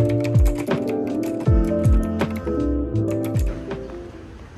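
Keys clack quickly on a mechanical keyboard.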